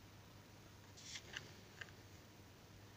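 A small plastic part is picked up off paper with a faint rustle and tap.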